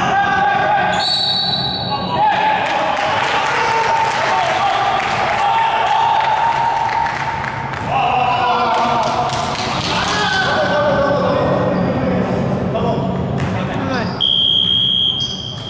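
Sneakers squeak on a wooden basketball court.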